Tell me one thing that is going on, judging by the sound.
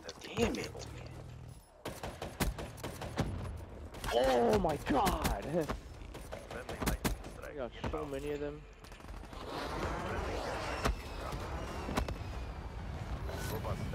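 Rapid gunfire bursts and cracks.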